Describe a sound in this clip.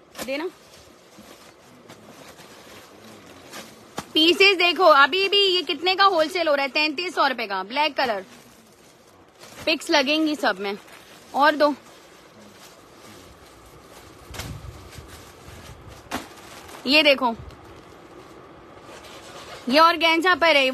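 Plastic wrapping crinkles as packets are handled.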